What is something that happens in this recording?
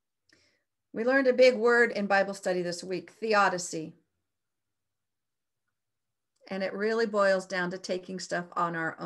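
A middle-aged woman speaks calmly and warmly through a microphone on an online call, with pauses.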